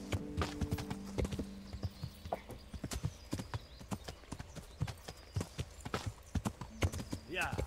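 Hooves thud in a quick, steady gallop over soft ground.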